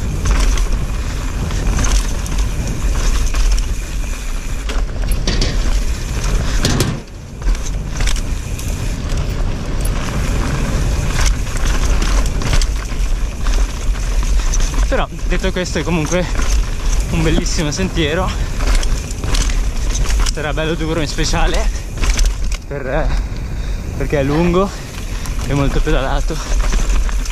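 Bicycle tyres crunch and skid over a rocky dirt trail.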